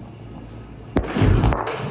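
A powerful explosion booms nearby and rumbles.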